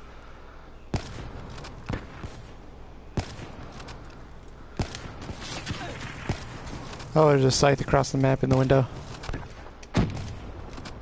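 A sniper rifle fires sharp, booming shots.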